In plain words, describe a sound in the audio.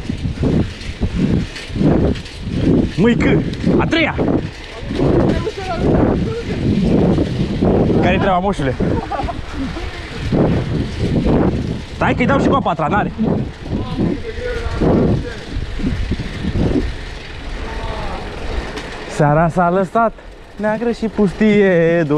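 Bicycle tyres roll steadily over a paved path.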